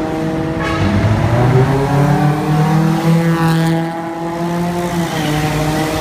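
A car engine runs close by, its pitch rising and falling slightly.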